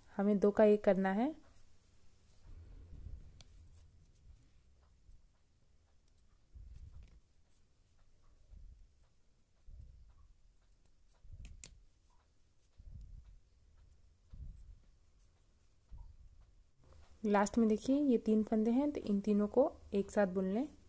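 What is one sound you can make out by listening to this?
Knitting needles click and scrape softly against each other.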